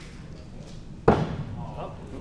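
An axe thuds into a wooden target.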